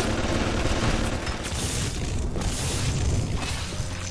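Electricity crackles and buzzes from a hand.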